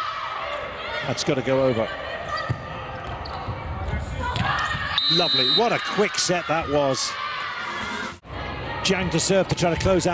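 A volleyball is struck hard with sharp smacks.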